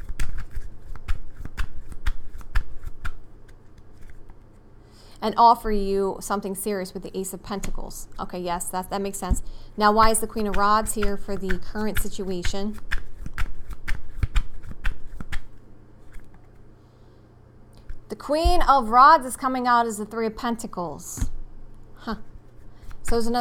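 Cards shuffle and tap together.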